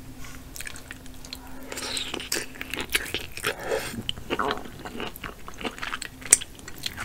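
A woman chews and slurps food wetly close to a microphone.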